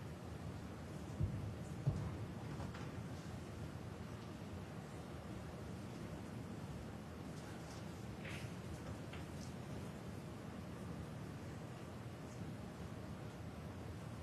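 An audience murmurs quietly in a large hall.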